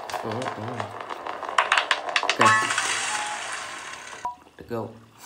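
A game on a phone plays a bright celebration sound through a small speaker.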